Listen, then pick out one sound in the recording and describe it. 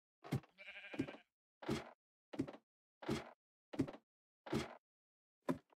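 Footsteps clank steadily on a ladder, one after another.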